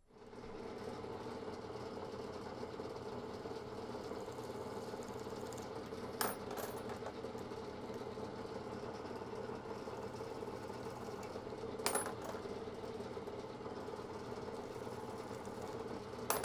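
A drill bit grinds into metal.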